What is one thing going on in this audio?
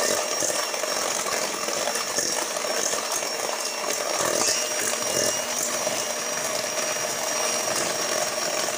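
An electric hand mixer whirs steadily, beating batter in a metal bowl.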